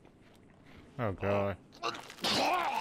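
A middle-aged man makes a silly blubbering noise.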